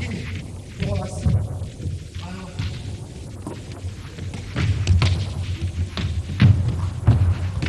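Sneakers squeak and thud on a hall floor.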